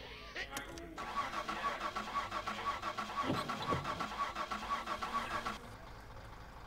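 A car engine's starter cranks rapidly and steadily.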